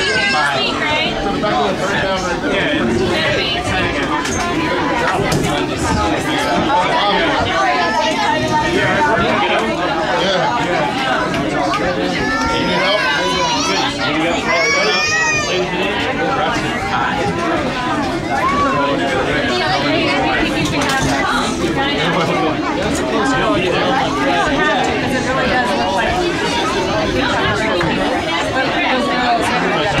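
Many people chatter all around in a busy room.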